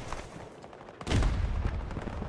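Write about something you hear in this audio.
A rifle shot fires with a loud boom.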